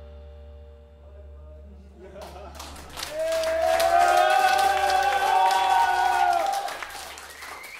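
A keyboard plays sustained chords through loudspeakers.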